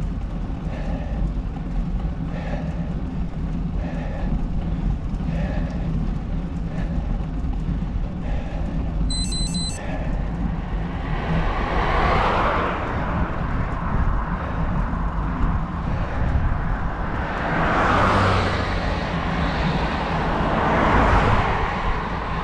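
Wind rushes steadily over the microphone.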